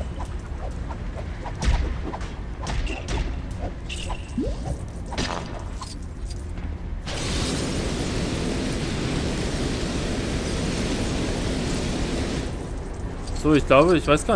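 Small pieces clatter and scatter.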